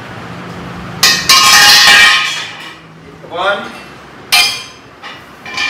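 Metal parts clatter and clink as they are handled.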